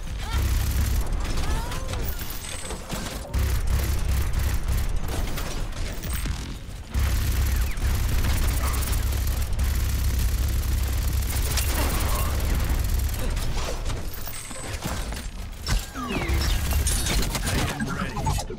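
A heavy gun fires in rapid bursts with loud, rumbling blasts.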